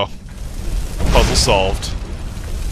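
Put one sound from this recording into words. A fiery blast whooshes out.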